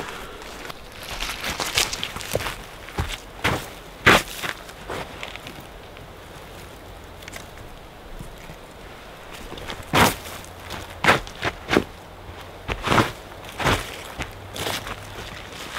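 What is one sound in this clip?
Footsteps crunch over dry leaves and twigs outdoors.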